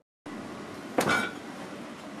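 A refrigerator door opens with a thud.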